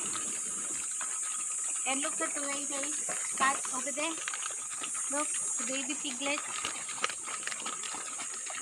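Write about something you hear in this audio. Pigs grunt and snuffle nearby.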